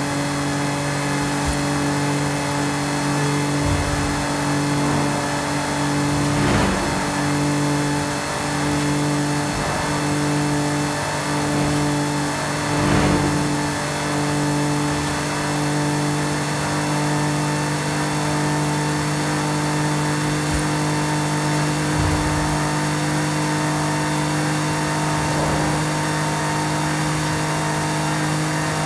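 A van engine drones steadily at high speed.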